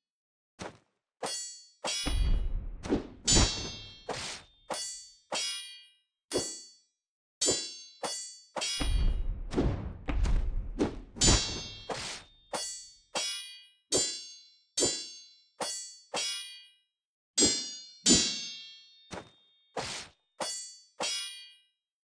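Swords clash and ring with sharp metallic clangs.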